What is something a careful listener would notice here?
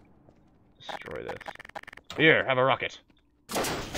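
A gun is swapped with a short mechanical click.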